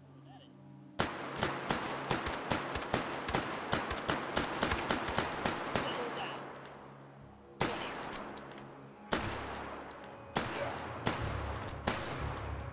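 A rifle fires rapid shots in bursts, with echoing cracks.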